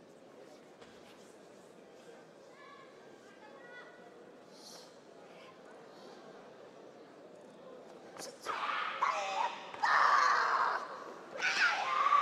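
Bare feet stamp and slide on a mat.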